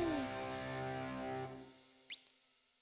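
A short cheerful jingle plays.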